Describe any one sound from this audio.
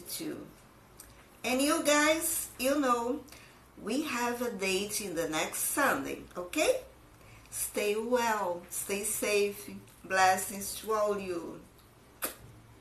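A woman talks with animation close to a microphone.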